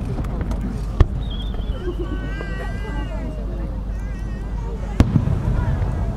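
Fireworks explode with sharp, booming bangs in the distance outdoors.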